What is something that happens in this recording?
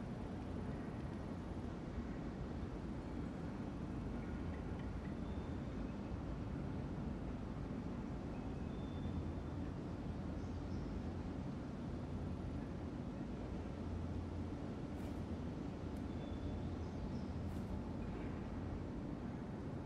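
A ceiling fan whirs steadily.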